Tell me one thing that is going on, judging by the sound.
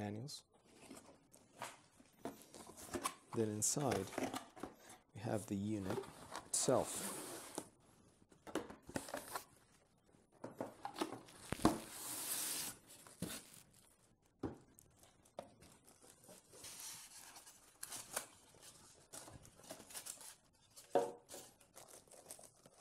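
Cardboard and paper rustle and scrape as a box is unpacked.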